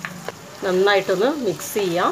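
A spatula stirs and scrapes food in a pan.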